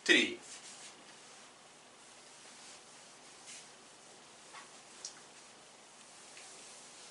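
A cloth rubs and wipes across a whiteboard.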